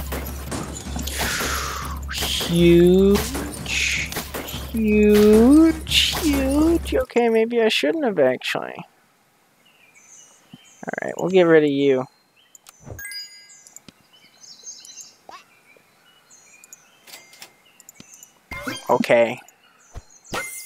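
Playful cartoon game sounds whoosh, squeak and pop.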